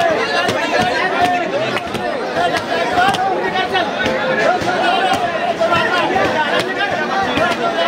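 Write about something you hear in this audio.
Wooden sticks knock sharply against each other and against shields.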